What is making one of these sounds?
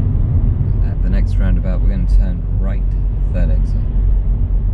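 A man speaks calmly from close by inside a car.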